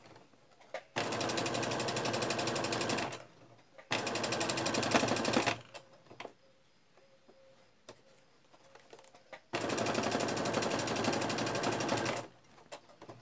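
A sewing machine whirs in fast bursts of stitching.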